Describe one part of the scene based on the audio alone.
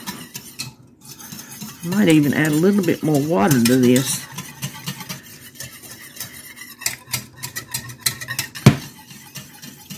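A whisk scrapes and clinks against a metal pot.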